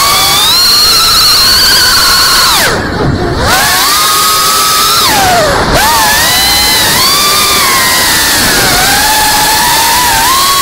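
A small drone's motors whine loudly, rising and falling in pitch as it swoops and dives.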